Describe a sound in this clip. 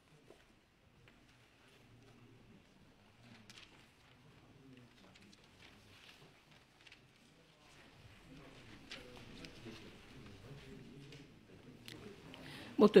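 A crowd of men murmur and talk quietly in a large room.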